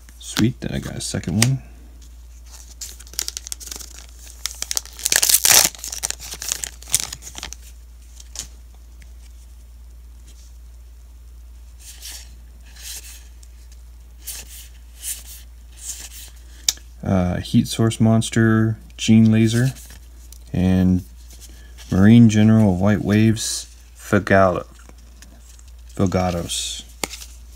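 Playing cards rustle and slide against each other in hands.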